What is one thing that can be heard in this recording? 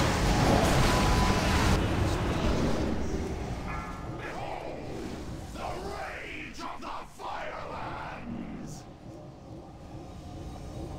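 Fiery spell blasts roar and crackle.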